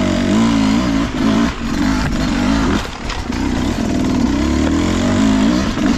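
A dirt bike engine revs and sputters up close, rising and falling.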